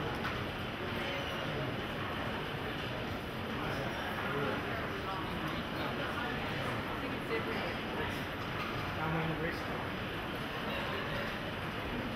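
A crowd of adults murmurs in a large echoing hall.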